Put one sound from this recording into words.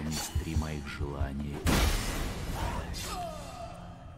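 Swords clash and strike hard in a fight.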